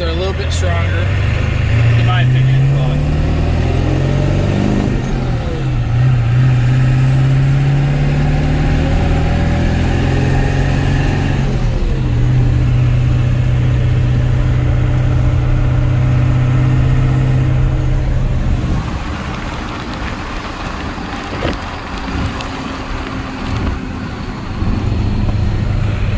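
Wind rushes past a moving vehicle outdoors.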